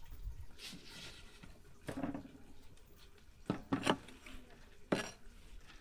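A knife chops leafy greens on a wooden board.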